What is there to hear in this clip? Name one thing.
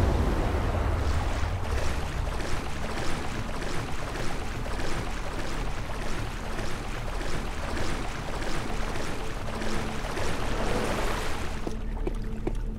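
Water splashes steadily as a swimmer strokes through it.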